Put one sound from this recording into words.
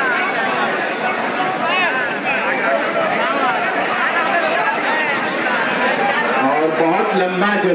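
A large crowd chatters and shouts all around, loud and busy.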